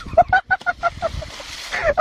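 Water splashes around a floating block of ice.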